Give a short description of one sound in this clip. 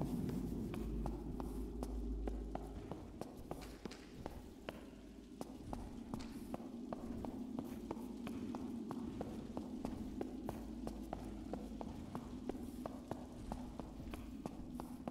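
Footsteps tap steadily on a stone floor.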